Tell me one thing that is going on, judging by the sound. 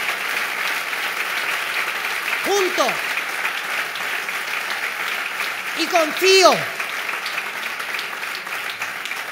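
A crowd applauds steadily.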